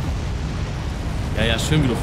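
Flames roar in a sudden burst.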